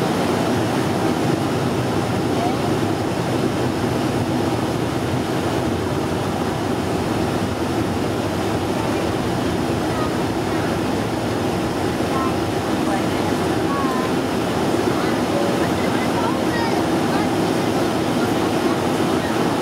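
Wheels rumble on a runway.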